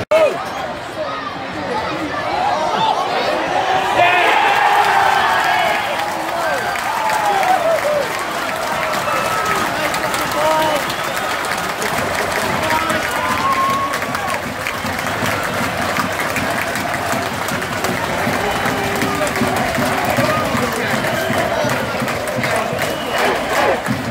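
Men in the crowd shout and chant loudly.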